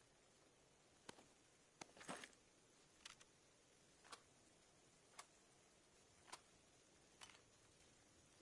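Soft clicks sound as items are picked up and moved around.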